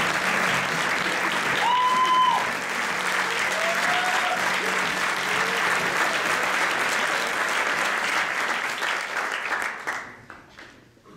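A large audience chatters and murmurs in an echoing hall.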